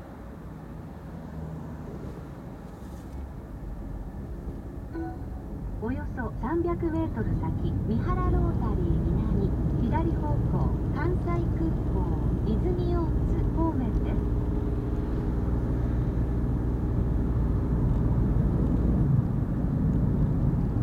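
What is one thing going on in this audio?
A car engine hums steadily with road noise from inside the car, growing louder as it speeds up.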